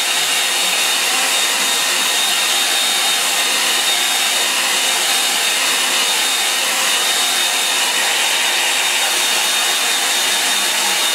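A hair dryer blows with a steady, loud whirring rush.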